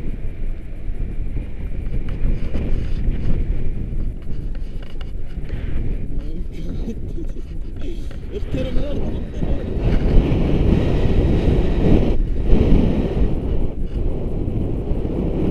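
Wind rushes and buffets loudly against a microphone outdoors.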